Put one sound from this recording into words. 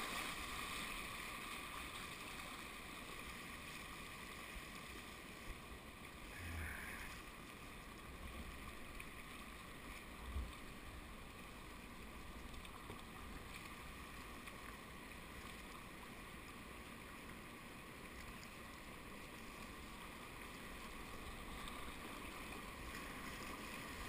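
A river rushes and gurgles steadily close by.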